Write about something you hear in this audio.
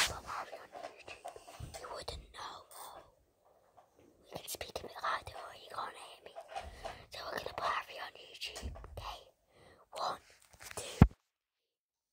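A boy talks quietly and close to the microphone.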